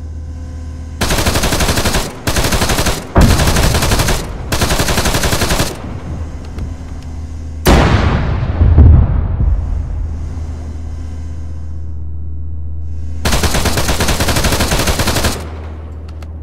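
Heavy gunfire rattles in long bursts.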